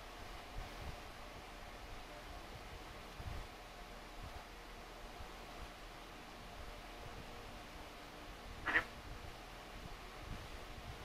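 Fingers tap softly on a phone.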